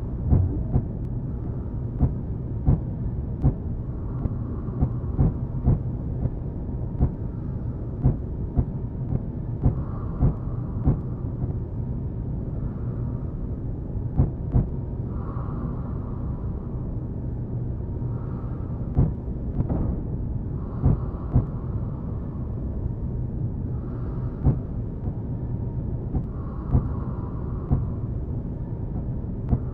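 A ship's engines rumble low and steadily.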